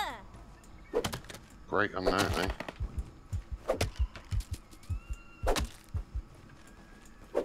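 Quick chopping thuds strike a tough grass stalk again and again.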